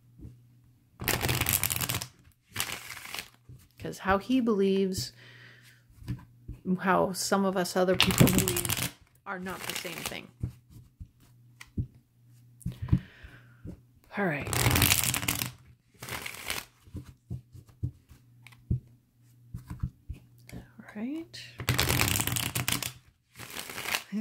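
Playing cards riffle and shuffle in quick bursts close by.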